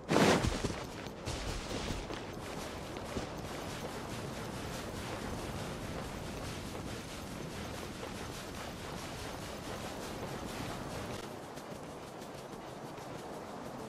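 Footsteps run quickly across soft sand.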